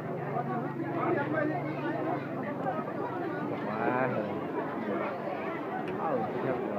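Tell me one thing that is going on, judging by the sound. A large crowd of men and women chatters loudly all around, close by.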